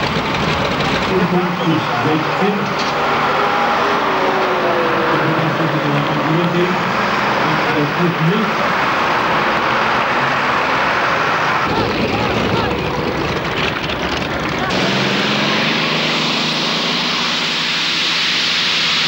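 A tractor engine roars loudly and steadily.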